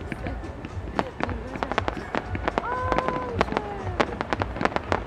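Fireworks crackle and pop in quick bursts.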